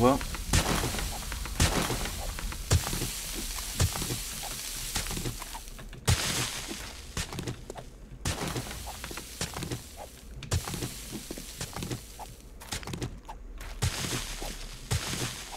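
Rock chunks crumble and tumble down.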